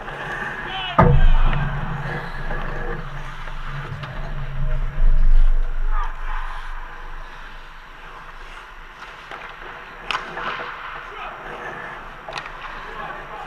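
A hockey stick or puck knocks sharply against the net or boards.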